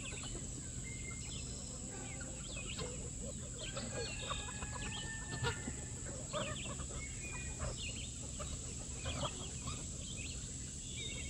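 A flock of chickens clucks and chatters close by.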